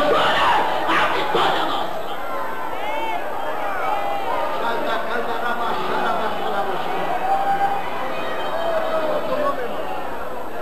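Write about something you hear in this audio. A large crowd cheers and calls out loudly.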